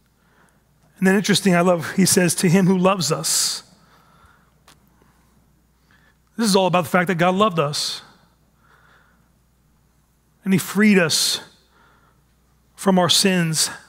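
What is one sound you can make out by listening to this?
A man speaks calmly through a microphone, pausing between phrases.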